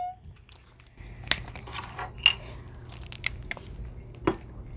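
Plastic bottles crackle and click as they are opened.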